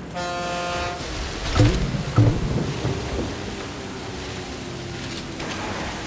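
Water splashes around a speeding boat.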